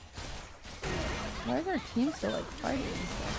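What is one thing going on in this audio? A young woman speaks with animation into a nearby microphone.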